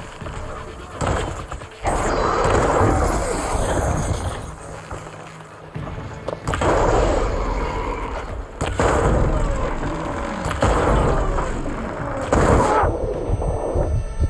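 Explosions boom and crackle in bursts.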